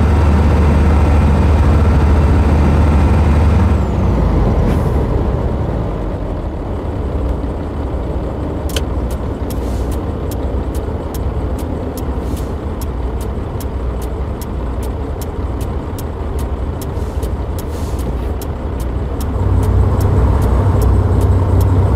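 A truck engine hums and rumbles steadily.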